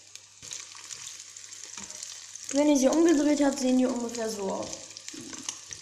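A spatula scrapes against a frying pan.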